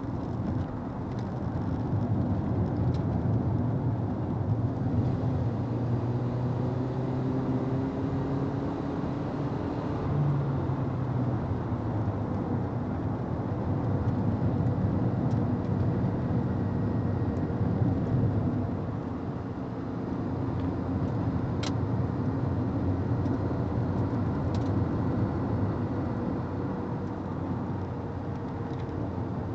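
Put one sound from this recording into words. A car engine roars steadily from inside the cabin, rising and falling as the car speeds along a track.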